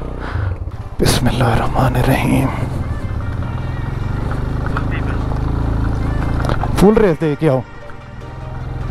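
A motorcycle engine rumbles steadily on a rough ride.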